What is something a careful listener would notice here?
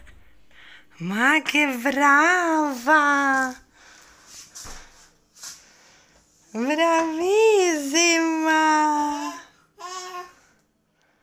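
A little girl squeals and laughs with delight.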